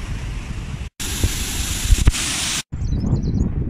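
Water pours and splashes over a lock gate.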